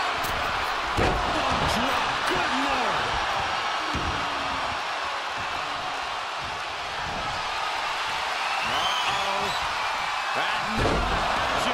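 A heavy body slams down with a loud thud.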